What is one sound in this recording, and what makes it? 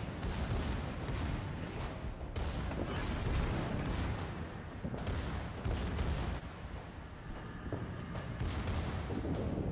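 Heavy ship guns boom repeatedly.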